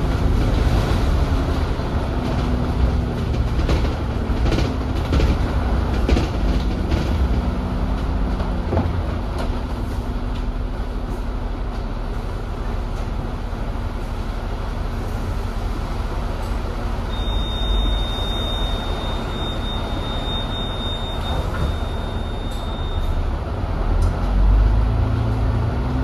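A bus engine rumbles and hums steadily.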